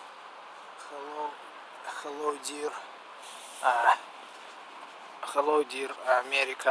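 A young man talks close to the microphone in short bursts.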